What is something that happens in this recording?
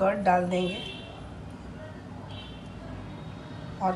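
Thick curd plops from a bowl into a glass bowl.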